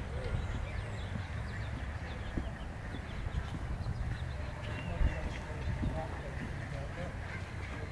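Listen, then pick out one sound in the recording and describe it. Footsteps walk on pavement some distance away.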